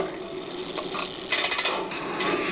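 A lever is pulled with a metal clunk.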